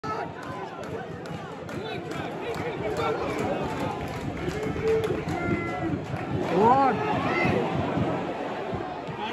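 A large stadium crowd chatters and murmurs all around.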